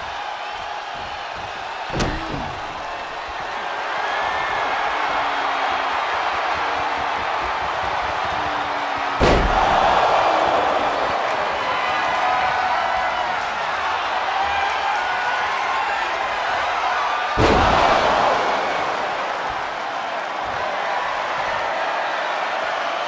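A large crowd cheers and chants steadily in a big arena.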